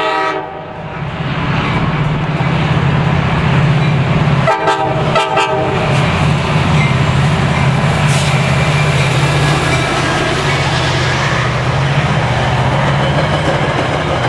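Train wheels clatter and rumble over the rails.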